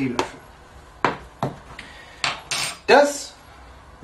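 Utensils knock against a counter.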